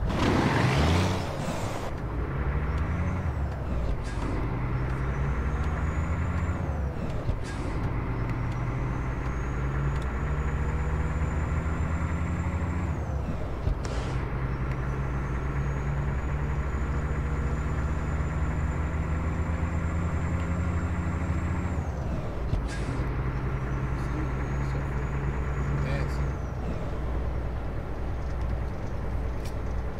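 A truck's diesel engine drones and rises in pitch as it shifts up through the gears.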